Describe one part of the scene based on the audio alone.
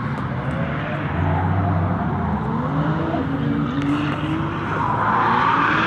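Engines rev and drone across an open track outdoors.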